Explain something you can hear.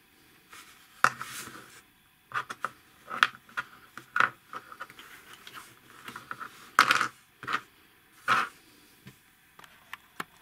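Small plastic parts click and snap against each other.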